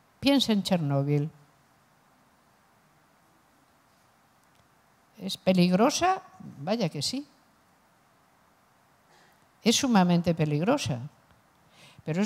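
A middle-aged woman speaks calmly through a microphone, with long pauses.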